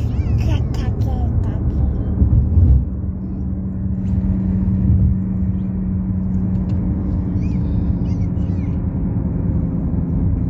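A car engine hums steadily with a low rumble.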